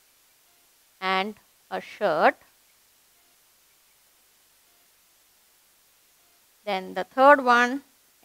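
A woman speaks clearly and calmly, as if explaining a lesson.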